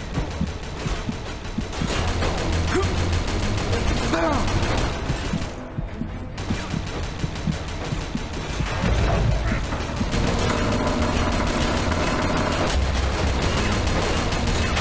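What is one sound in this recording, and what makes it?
Bullets strike and ricochet off metal.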